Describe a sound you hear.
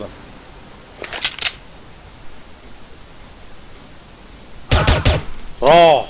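Gunshots ring out in a video game.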